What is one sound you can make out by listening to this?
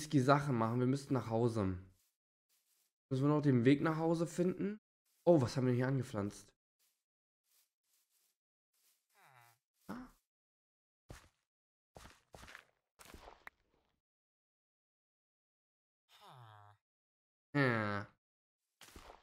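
A young man talks casually and close to a microphone.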